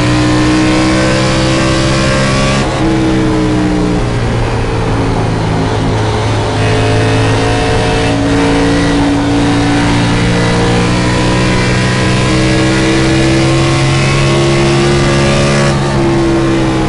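A race car engine roars loudly, its pitch dipping through the turns and climbing again.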